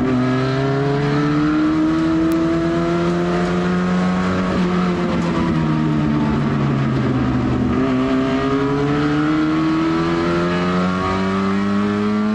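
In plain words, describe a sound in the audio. The car's chassis rattles and vibrates over the track.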